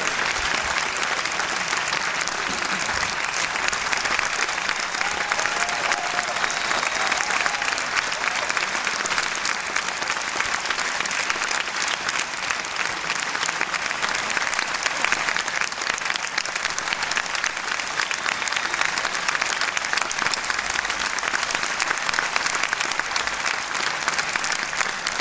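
An audience claps steadily in a large hall.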